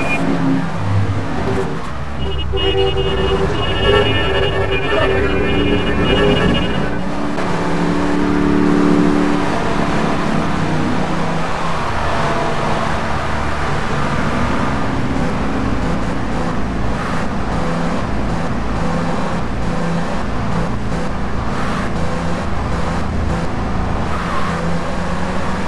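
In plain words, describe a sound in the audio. Tyres hiss on a road.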